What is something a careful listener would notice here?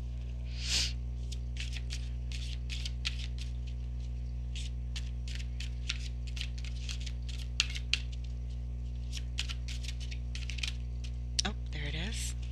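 Playing cards riffle and slap together as they are shuffled by hand.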